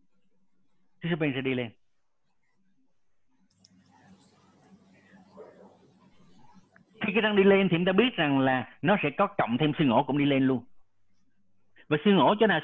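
A man lectures calmly over an online call.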